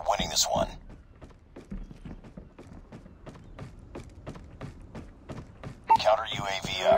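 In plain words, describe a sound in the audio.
Quick footsteps thud on a wooden deck.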